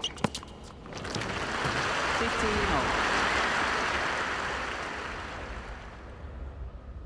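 A stadium crowd applauds and cheers.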